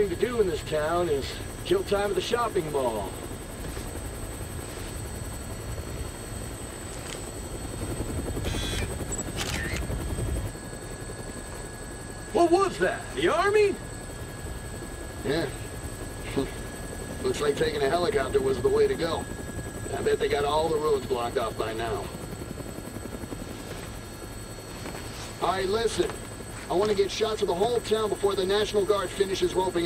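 A helicopter's rotor and engine drone, heard from inside the cabin.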